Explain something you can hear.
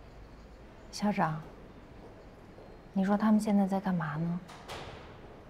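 A young woman speaks calmly and quietly, close by.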